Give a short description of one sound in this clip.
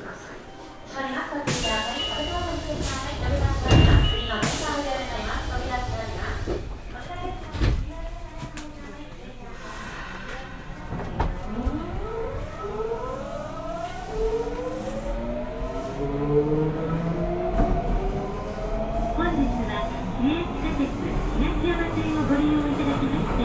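An electric train's motor hums at a standstill.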